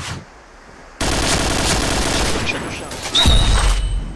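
A rapid burst of gunfire rattles in a video game.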